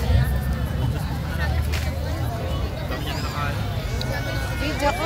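A crowd chatters all around in a large, busy space.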